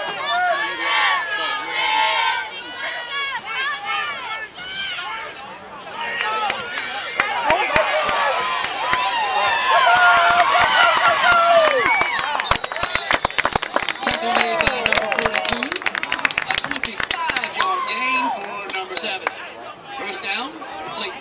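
Young men on the sideline shout with excitement.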